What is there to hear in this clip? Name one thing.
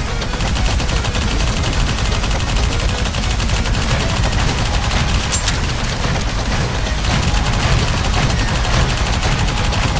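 Explosions boom heavily.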